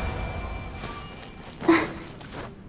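A bright magical chime sparkles and fades.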